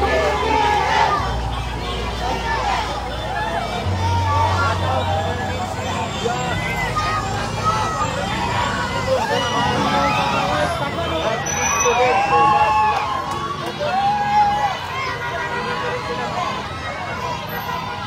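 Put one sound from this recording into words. A large crowd outdoors cheers and shouts excitedly.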